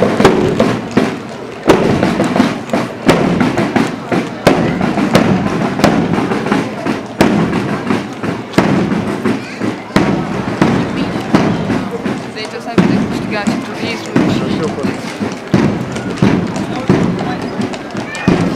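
A group of people marches in step on paving stones.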